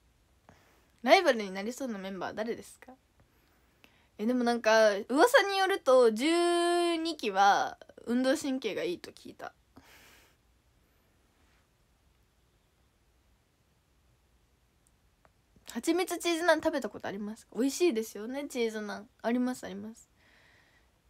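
A young woman talks close to a microphone, with animation and in bursts.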